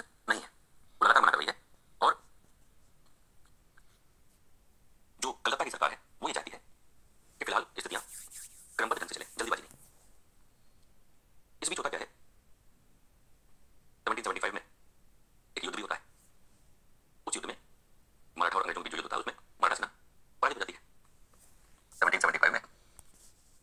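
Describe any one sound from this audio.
A middle-aged man lectures calmly through a microphone, in short bursts with pauses.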